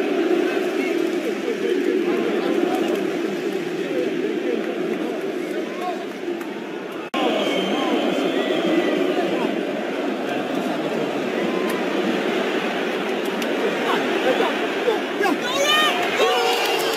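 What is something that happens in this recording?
A large stadium crowd roars and chants.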